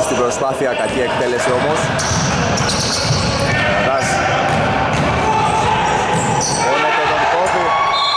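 Men shout to each other across the court.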